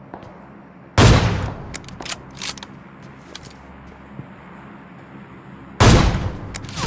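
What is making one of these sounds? A sniper rifle fires a loud, echoing shot.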